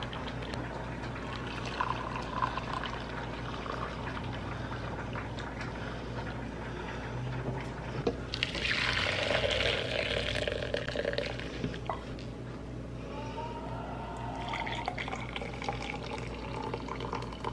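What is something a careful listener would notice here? Liquid trickles from a jug into a glass.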